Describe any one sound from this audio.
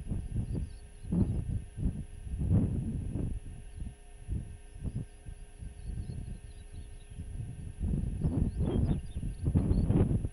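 Wind gusts roar across open ground outdoors.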